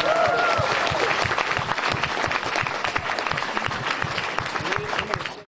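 People in a crowd cheer and whoop.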